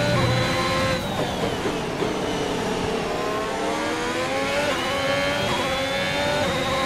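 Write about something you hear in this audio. A racing car engine drops in pitch as it brakes and shifts down, then revs up again.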